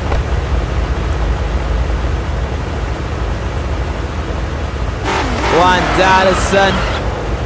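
Car engines idle with a low, steady rumble.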